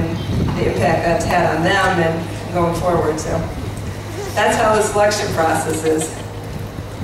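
A woman speaks with animation through a microphone and loudspeakers.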